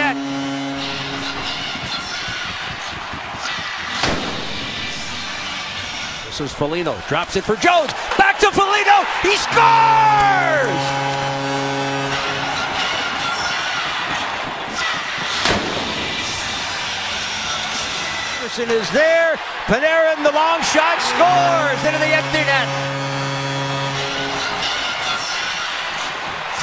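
A large crowd cheers and claps in a big echoing arena.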